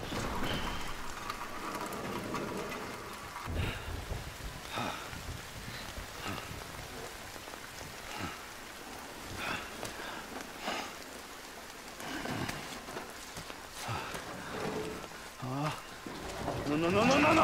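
Rain patters steadily all around.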